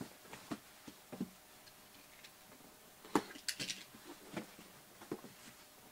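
A thumb presses and scrapes against a cardboard box, making soft taps and rustles.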